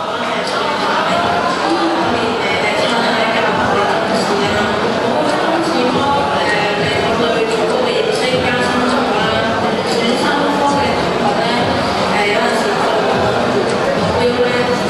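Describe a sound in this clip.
A man speaks steadily through loudspeakers in a large echoing hall.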